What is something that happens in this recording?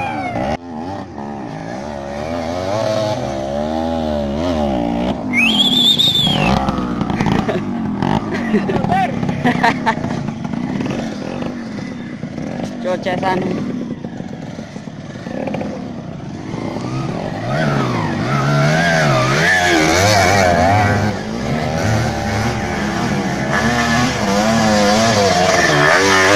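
Dirt bike engines rev and whine up a rough hillside outdoors.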